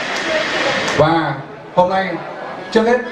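A middle-aged man speaks into a microphone over loudspeakers.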